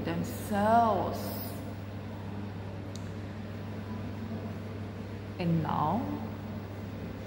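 A woman speaks close by in short, expressive bursts.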